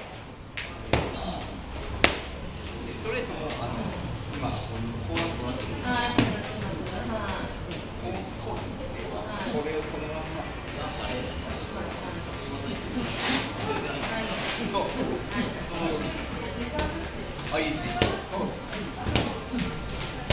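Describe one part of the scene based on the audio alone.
A man calls out instructions.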